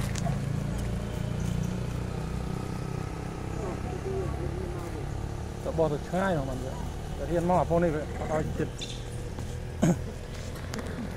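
Monkeys scamper over dry leaves on the ground.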